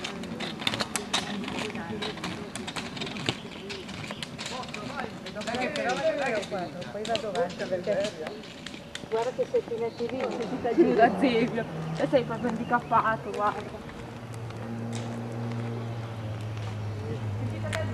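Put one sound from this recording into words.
Small wheels roll and hum on a paved road.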